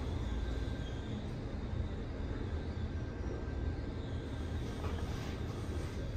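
A glass elevator hums steadily as it moves.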